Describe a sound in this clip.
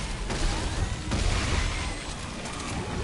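A flamethrower roars and crackles.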